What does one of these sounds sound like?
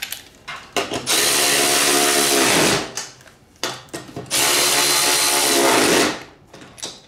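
A cordless impact driver whirs in two loud bursts.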